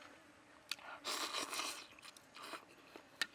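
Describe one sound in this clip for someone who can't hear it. A man slurps noodles loudly, close by.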